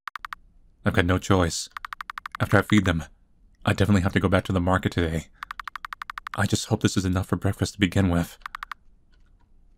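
Rapid electronic blips tick as dialogue text types out.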